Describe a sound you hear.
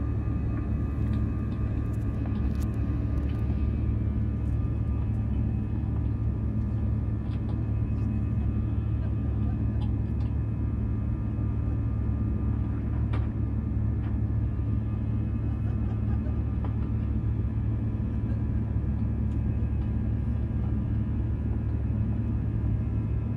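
A jet engine roars steadily from close by, heard from inside an airliner's cabin.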